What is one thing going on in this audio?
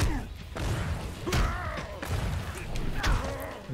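Punches and kicks thud in a video game fight.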